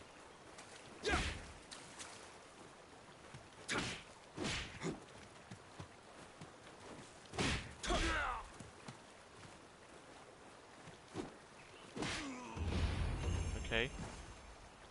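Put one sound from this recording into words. Swords clash and slash with sharp metallic swishes.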